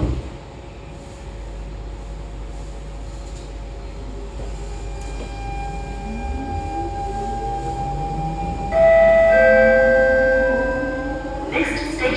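A train rumbles along the track.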